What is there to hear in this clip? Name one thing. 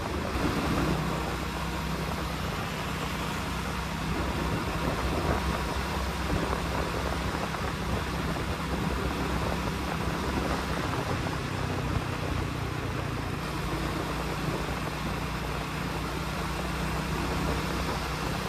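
A motorcycle engine hums steadily at cruising speed close by.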